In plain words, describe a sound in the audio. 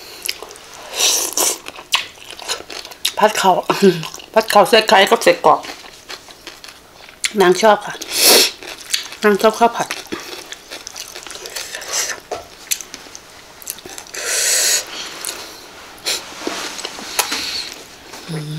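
A young woman slurps and chews food noisily close to a microphone.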